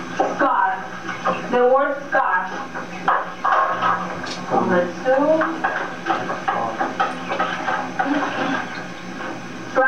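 A woman speaks clearly to a room, somewhat distant and with slight echo.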